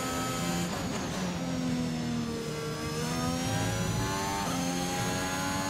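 A racing car engine whines at high revs, shifting pitch as the car brakes and accelerates.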